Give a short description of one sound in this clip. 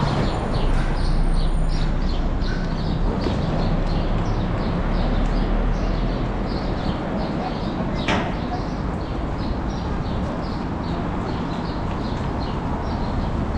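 A train rumbles slowly into a station, its wheels clicking over rail joints.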